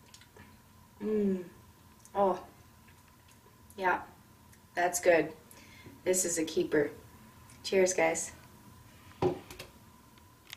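A young woman talks nearby in short, lively phrases.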